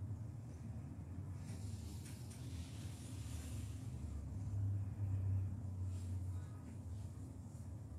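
A young boy speaks quietly over an online call.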